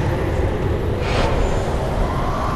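Fire flares up with a sudden whoosh.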